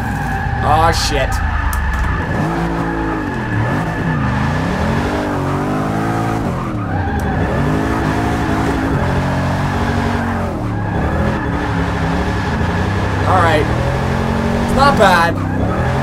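A car engine revs up and down hard throughout.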